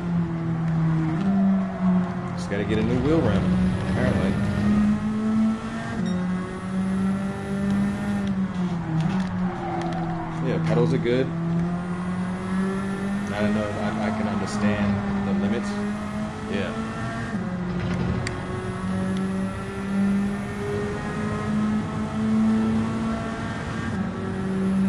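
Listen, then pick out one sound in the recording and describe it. A racing car engine roars steadily, its pitch rising and falling with the gear changes.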